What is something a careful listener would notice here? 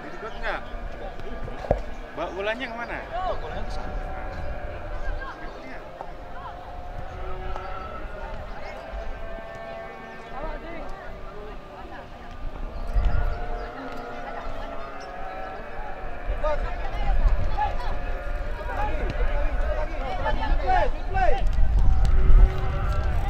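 Young players shout and call to each other in the distance outdoors.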